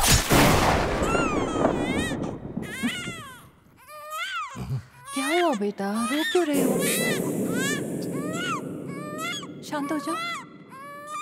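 A baby cries loudly and wails.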